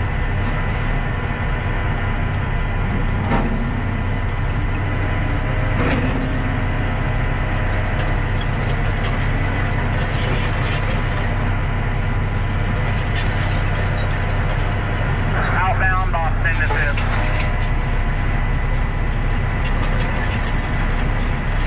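A heavy diesel engine rumbles steadily nearby.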